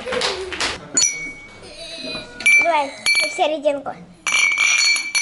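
Glasses clink together and ring.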